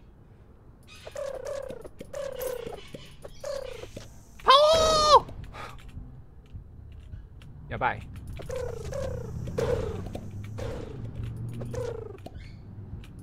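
Cartoonish crows caw in short bursts.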